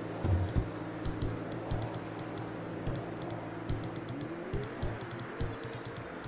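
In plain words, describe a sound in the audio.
Soft menu clicks tick quickly as a selection moves through a list.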